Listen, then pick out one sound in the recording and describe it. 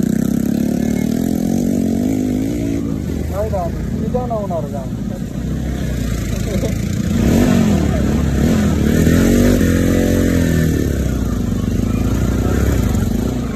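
Other motorcycles rev and ride past nearby.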